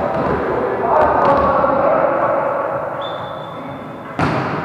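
A volleyball thuds as it is hit.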